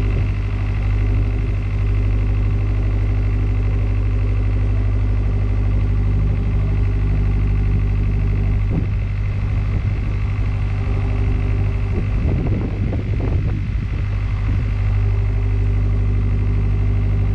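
Water splashes along a boat's hull.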